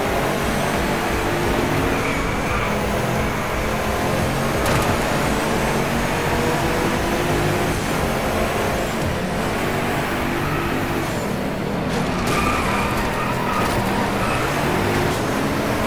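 Race car engines roar and whine at high speed.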